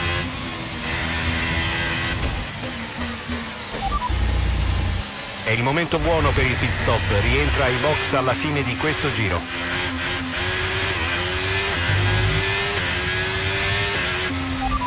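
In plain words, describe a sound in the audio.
A racing car engine roars, dropping in pitch under braking and rising as the car accelerates through the gears.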